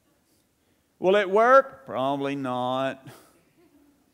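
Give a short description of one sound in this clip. A middle-aged man speaks with animation in an echoing hall.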